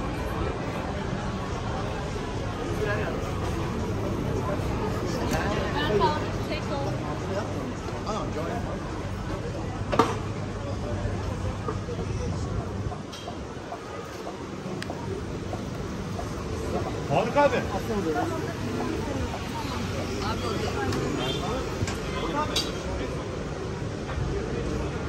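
Voices of passers-by chatter nearby on a busy street.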